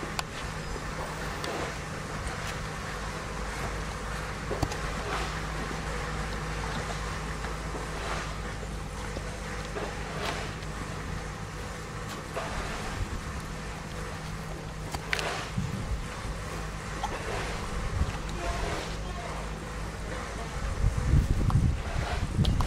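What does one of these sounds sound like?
A horse crunches and chews watermelon.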